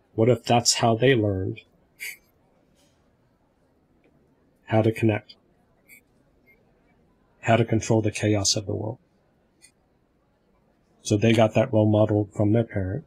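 A man speaks calmly with pauses, heard over an online call through a headset microphone.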